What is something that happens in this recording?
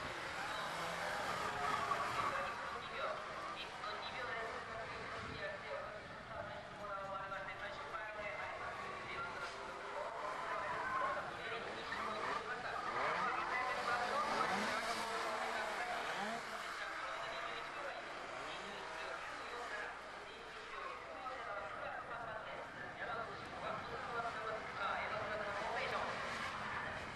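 A racing car's engine revs hard as it drives around a track.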